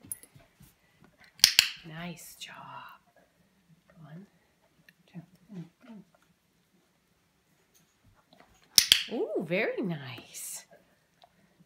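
A dog sniffs and licks at a toy.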